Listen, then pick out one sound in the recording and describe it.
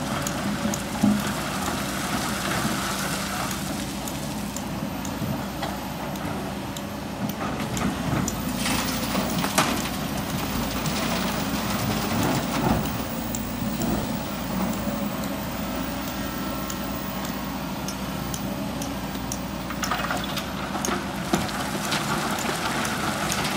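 Rocks and dirt pour from an excavator bucket into a truck bed with a rattling crash.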